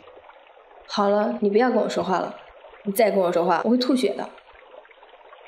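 A young woman speaks sharply.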